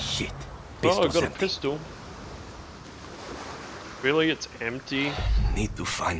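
Gentle waves wash onto a shore.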